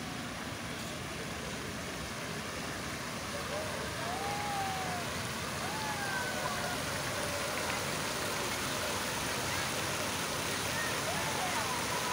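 Fountain jets splash and hiss steadily.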